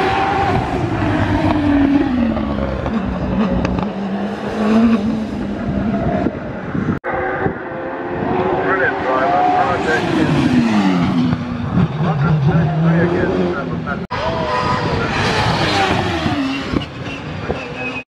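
A racing car engine roars loudly, revving up and down as the car speeds past.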